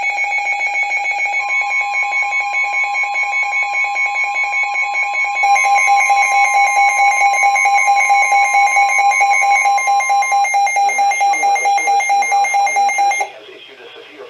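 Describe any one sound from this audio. Several weather alert radios sound loud, rapid, pulsing electronic alarm tones together.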